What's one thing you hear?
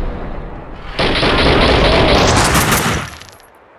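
Fire whooshes and roars loudly as a firebomb bursts into flames.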